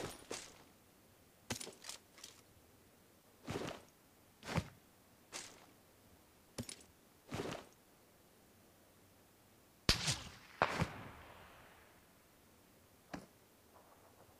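Gear clicks and rustles in short bursts as items are picked up.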